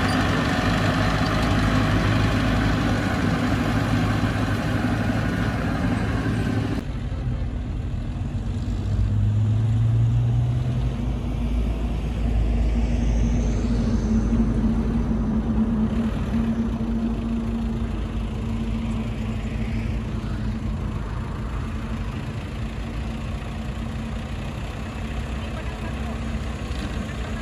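A bulldozer engine rumbles steadily nearby.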